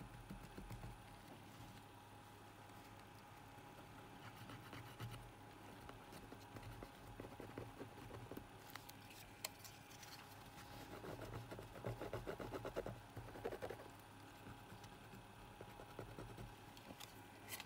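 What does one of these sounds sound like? A cotton swab scrubs softly against a circuit board.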